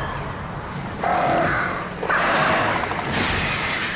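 A flock of birds shrieks and flutters close by.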